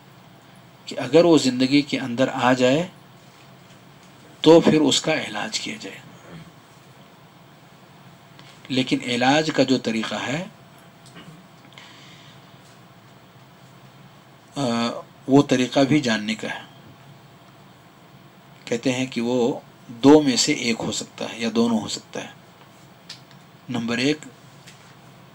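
A middle-aged man speaks calmly into a close headset microphone, in short phrases with pauses.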